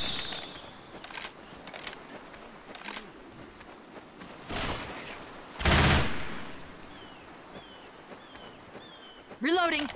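Footsteps tread softly on sand.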